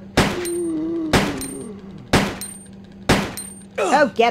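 Gunshots ring out in quick succession.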